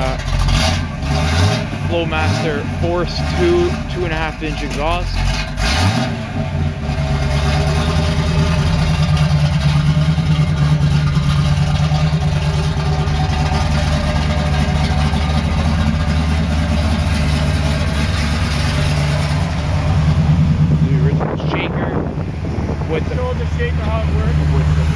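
A car engine idles with a deep, rumbling burble from the exhaust.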